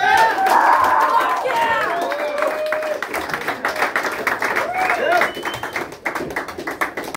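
A drummer plays a fast beat on a drum kit.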